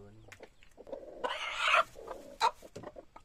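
A hen clucks and squawks as it is lifted.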